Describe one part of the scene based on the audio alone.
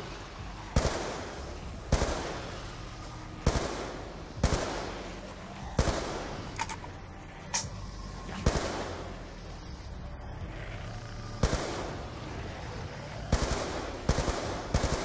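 Gunshots fire in sharp, echoing bursts.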